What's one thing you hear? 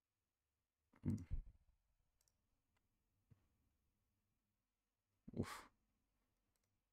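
A video game plays short swooshing sound effects.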